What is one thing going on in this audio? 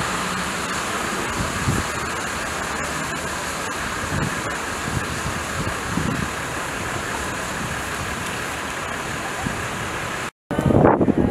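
Flares burn with a steady, rushing hiss outdoors.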